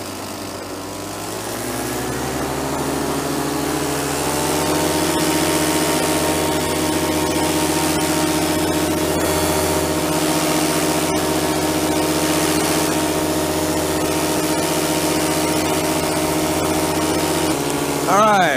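A drone's motors whine steadily, rising in pitch at first.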